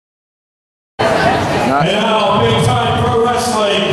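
A man announces loudly through a microphone and loudspeakers in a large echoing hall.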